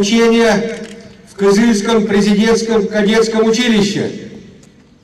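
An elderly man shouts a greeting through a loudspeaker, outdoors.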